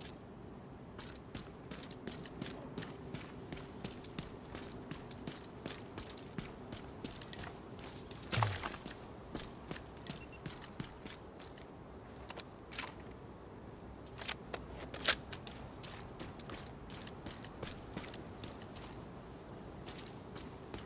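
Footsteps splash quickly over wet ground.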